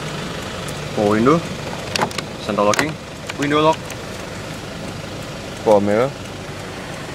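A power window motor whirs in short bursts.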